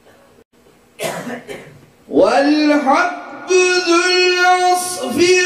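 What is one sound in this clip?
A man sings through a microphone and loudspeakers in a large hall.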